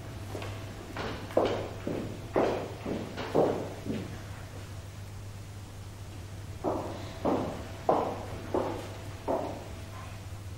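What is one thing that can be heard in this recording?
High-heeled footsteps tap across a hard floor.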